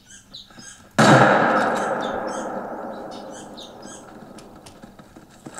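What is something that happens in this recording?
A rifle fires a single loud shot that echoes and slowly fades.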